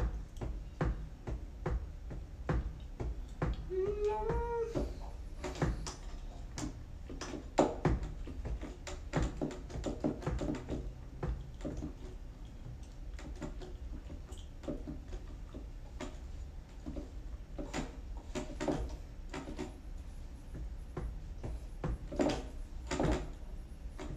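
Keyboard keys tap and thump under quick fingers.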